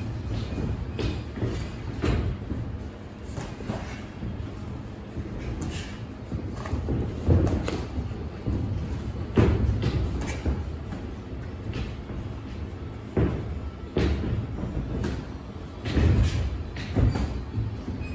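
Boxing gloves thud against padded gloves and headgear.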